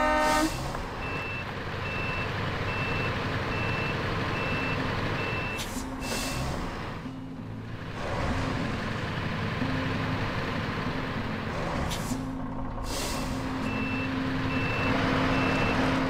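A beeping warning sounds repeatedly while the truck reverses.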